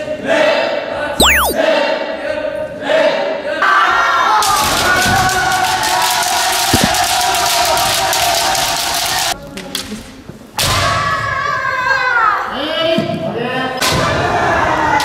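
Many young people shout loudly in a large echoing hall.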